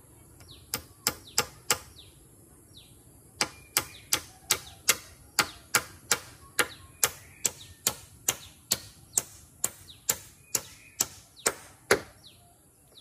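A hammer knocks sharply on wood in a quick, steady rhythm.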